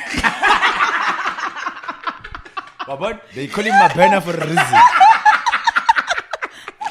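Two young men laugh loudly into microphones.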